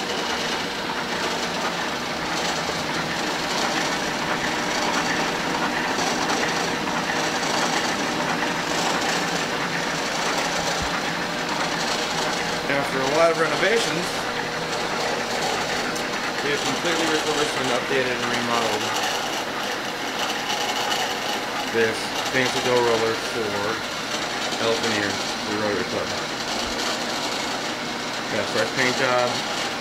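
A machine motor hums steadily with rollers whirring.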